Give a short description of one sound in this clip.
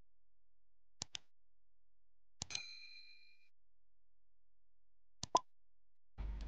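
A computer mouse clicks sharply a few times.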